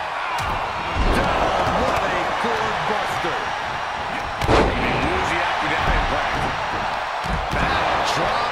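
Heavy thuds ring out as bodies slam onto the mat.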